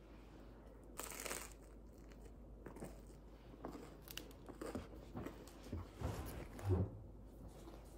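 Crusty bread crunches as a person bites into it.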